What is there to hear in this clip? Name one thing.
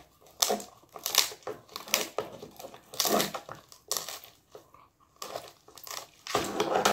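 A dog gnaws and chews noisily on a chew toy, close by.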